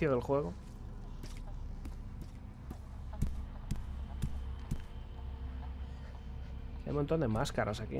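Footsteps thud softly on a creaky wooden floor.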